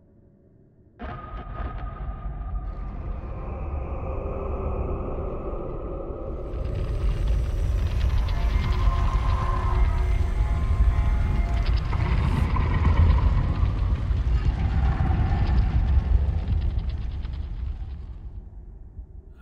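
A deep, humming roar of rushing energy swells, then fades away.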